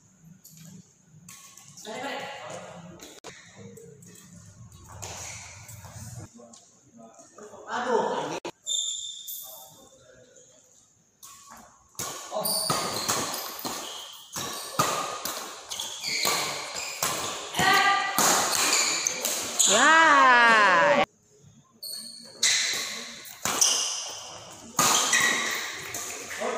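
A badminton racket strikes a shuttlecock.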